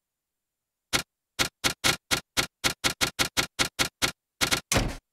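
A game interface blips rapidly as text types out.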